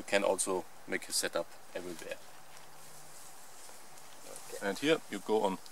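A tarp rustles as a man handles it.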